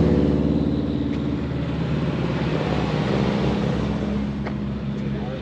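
A second car's engine hums as it passes nearby.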